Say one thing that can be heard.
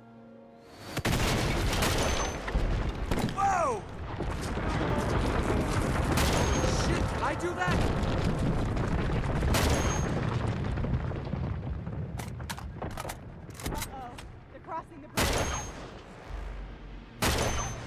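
Loud rifle shots crack and echo, one at a time.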